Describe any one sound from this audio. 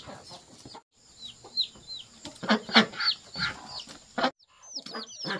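Ducks quack softly.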